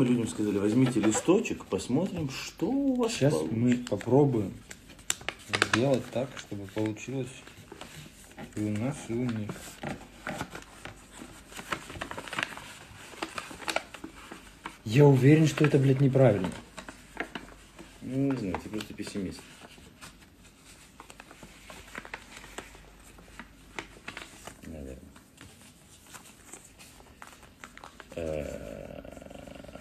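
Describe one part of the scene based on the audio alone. A young man talks casually and close by.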